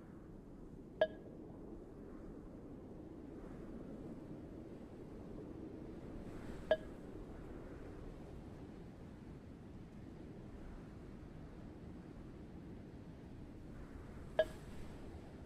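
A short bright chime rings now and then as dialogue text advances.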